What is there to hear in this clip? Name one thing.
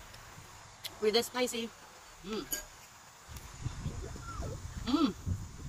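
A woman speaks close by in a lively, playful voice.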